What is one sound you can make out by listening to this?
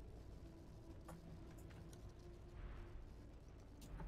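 Flames roar in a burst of fire.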